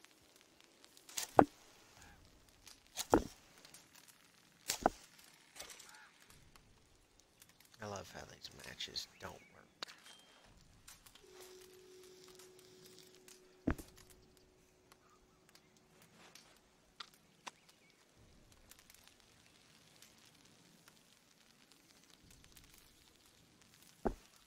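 A campfire crackles and pops nearby.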